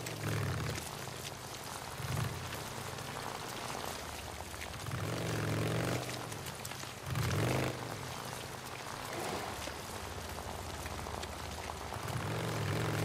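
A motorcycle engine revs and roars, rising and falling in pitch.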